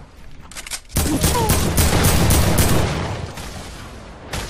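Rapid gunshots crack in a video game.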